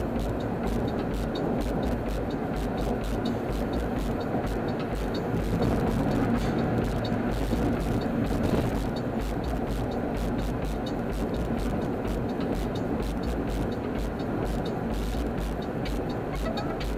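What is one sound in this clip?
Wind rushes past the car's windows.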